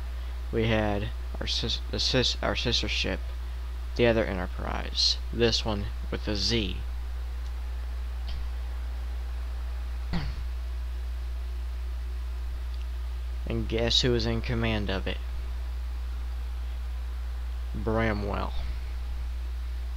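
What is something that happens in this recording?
A young man talks calmly into a close microphone, pausing between phrases.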